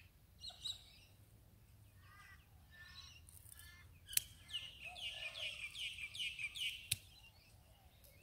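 Garden scissors snip plant stems.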